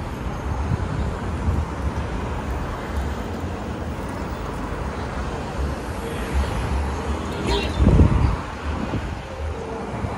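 Cars drive past on the street.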